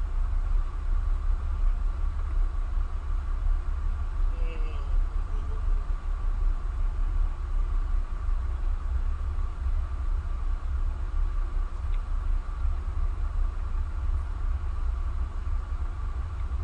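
Water splashes as a figure wades through a stream.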